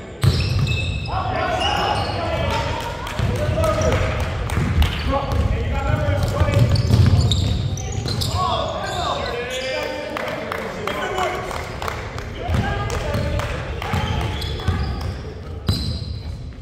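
Several men and women shout and call out to each other in a large echoing gym.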